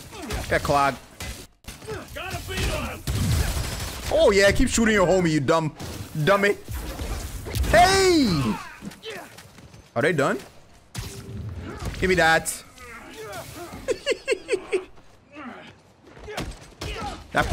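Punches and blows thud in a game fight.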